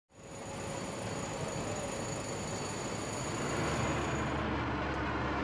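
Aircraft engines roar loudly.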